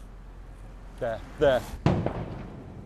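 A man speaks urgently, close by, outdoors.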